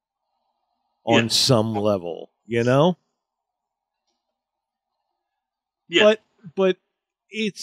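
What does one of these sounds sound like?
A man speaks with animation into a microphone, in short bursts.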